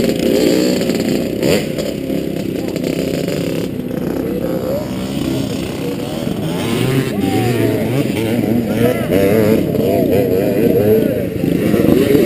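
Dirt bike engines rev loudly close by, rising and falling in pitch.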